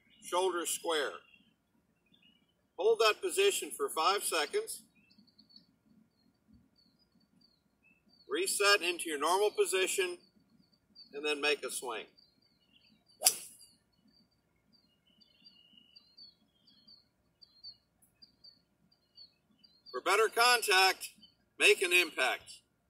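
A man speaks calmly and clearly, close to a microphone.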